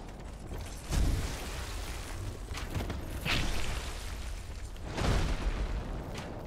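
Heavy blows thud as a sword strikes a huge beast.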